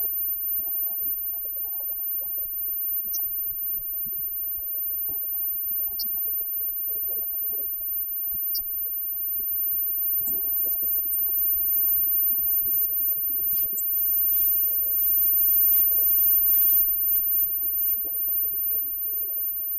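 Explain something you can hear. A live rock band plays loudly with electric guitars, bass and drums.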